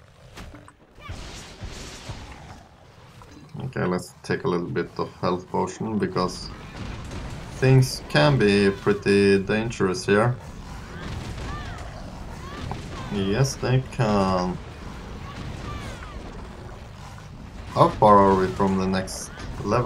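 Magic spells burst and crackle.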